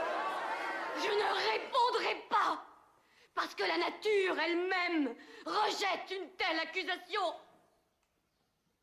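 A woman speaks loudly and forcefully.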